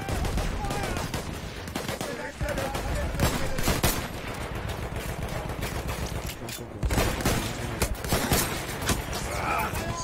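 Gunshots crack in the distance.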